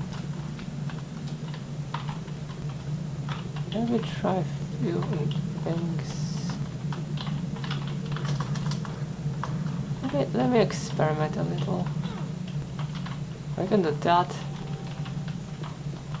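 Keyboard keys click and clatter under quick typing.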